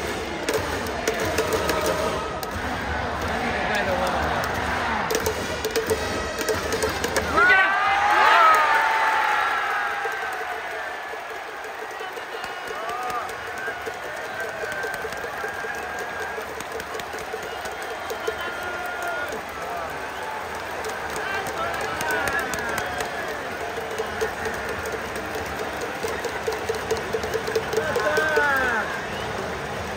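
A large stadium crowd cheers and chants loudly.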